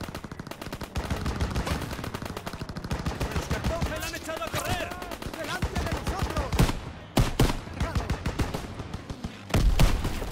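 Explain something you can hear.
Rapid gunfire crackles all around.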